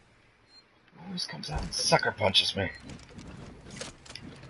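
Electronic beeps sound from a keypad.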